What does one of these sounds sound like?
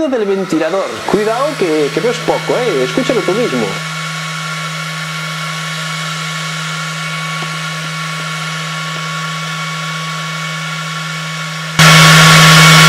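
A laser engraver's fan hums steadily.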